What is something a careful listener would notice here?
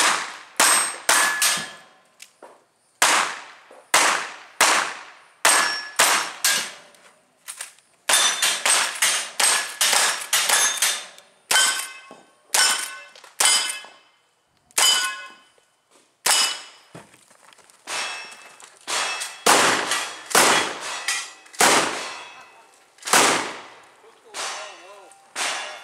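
Bullets clang on steel targets.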